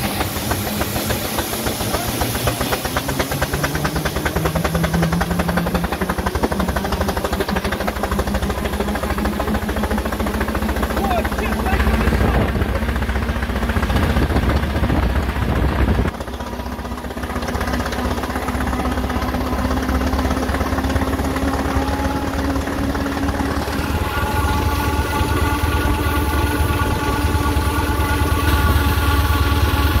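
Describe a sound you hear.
A small steam engine chuffs rhythmically as it drives along.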